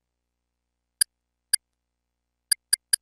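Quick soft clicks sound as a menu is browsed.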